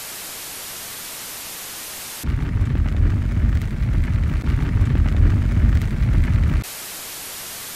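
Television static hisses loudly.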